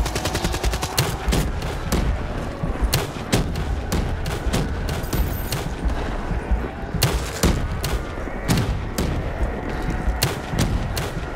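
Single heavy gunshots crack one after another.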